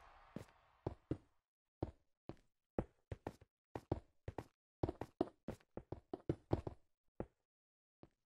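Blocks are placed one after another with quick soft clicks.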